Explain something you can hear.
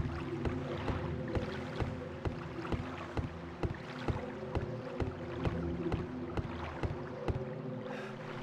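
Footsteps run quickly across hollow wooden boards.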